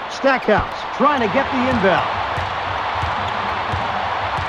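A basketball bounces repeatedly on a hard court.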